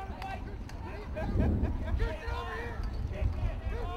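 Lacrosse sticks clack against each other.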